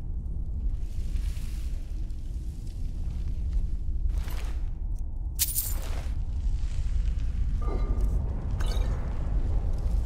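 Footsteps pad softly on stone.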